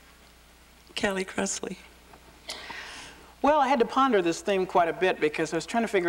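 A middle-aged woman speaks clearly and with animation into a microphone.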